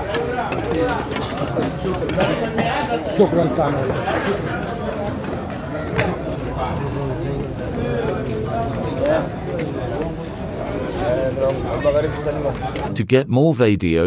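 A man speaks into a microphone, heard over loudspeakers outdoors.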